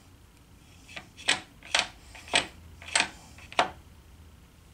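Metal parts click and clink as a gear train is adjusted by hand.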